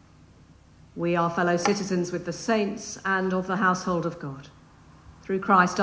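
A woman reads aloud calmly through a microphone in an echoing hall.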